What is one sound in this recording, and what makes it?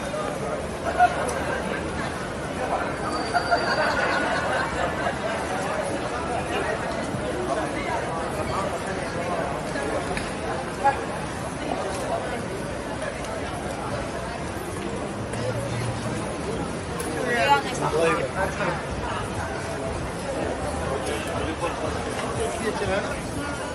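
A crowd of people chatters steadily outdoors.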